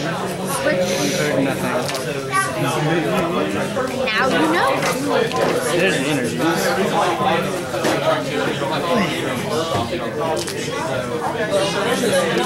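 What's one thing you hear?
Playing cards slide and tap softly on a mat.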